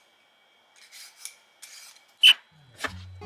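A knife chops through a potato onto a cutting board.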